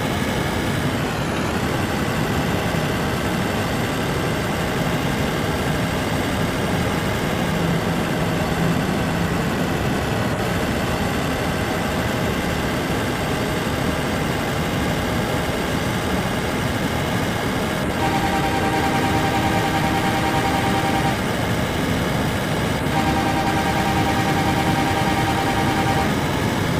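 A heavy truck engine rumbles steadily as the truck cruises along a highway.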